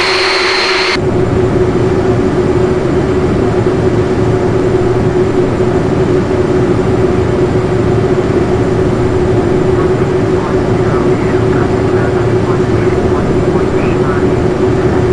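Jet engines hum steadily with a low rumble.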